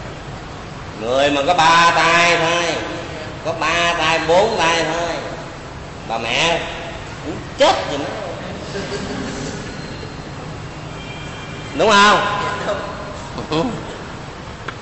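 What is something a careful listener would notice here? An elderly man speaks slowly and expressively into a microphone, with long pauses.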